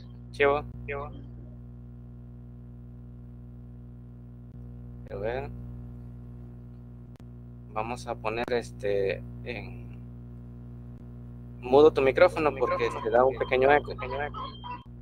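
A young man speaks calmly through a headset microphone in an online call, with pauses.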